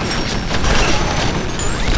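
Automatic gunfire rattles loudly.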